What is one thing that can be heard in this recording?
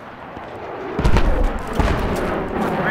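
Rifle shots bang loudly in quick bursts.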